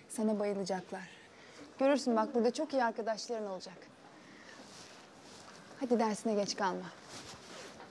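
A young woman speaks warmly and gently, close by.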